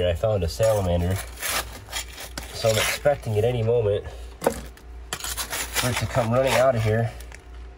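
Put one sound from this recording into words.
Loose gravel and rubble clatter as a gloved hand scoops them up.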